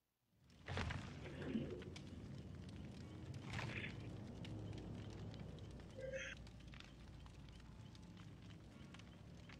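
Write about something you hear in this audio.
A campfire crackles and pops steadily.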